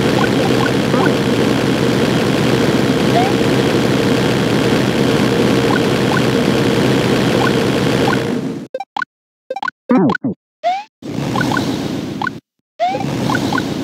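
Upbeat video game music plays.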